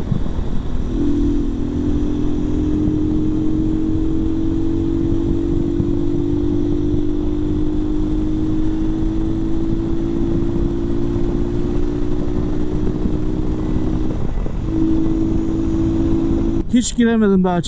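A motorcycle engine hums steadily at speed, its pitch rising slowly.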